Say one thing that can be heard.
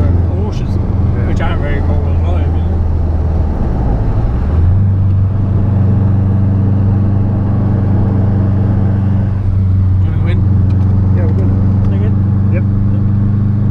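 A car engine drones loudly from inside the cabin and changes pitch as the car shifts gear.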